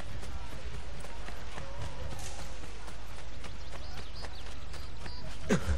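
Footsteps run quickly across stone paving.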